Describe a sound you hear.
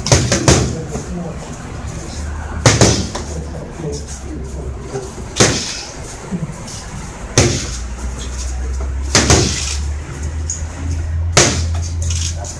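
Boxing gloves smack against focus mitts in sharp bursts.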